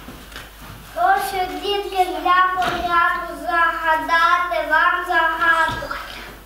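A young boy sings loudly in a high voice.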